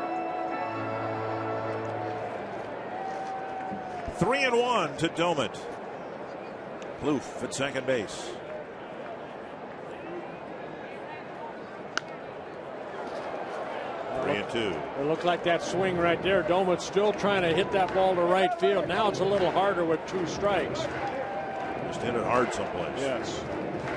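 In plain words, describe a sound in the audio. A stadium crowd murmurs in the stands.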